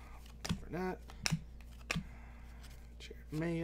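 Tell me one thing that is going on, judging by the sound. A foil card wrapper crinkles and tears.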